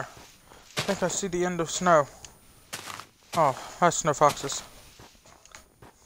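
Leafy blocks break with short crunching sounds.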